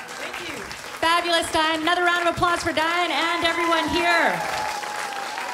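A woman sings into a microphone.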